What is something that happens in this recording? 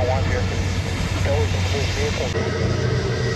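A jet airliner roars overhead as it climbs.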